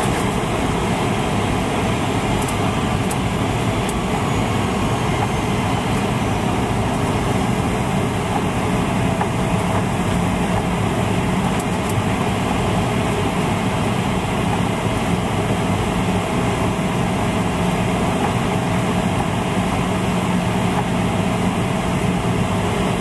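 Aircraft engines roar steadily inside a cabin.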